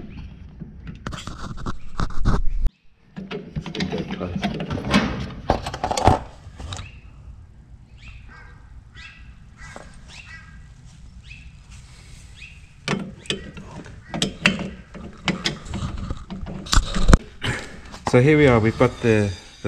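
An older man talks calmly and close by.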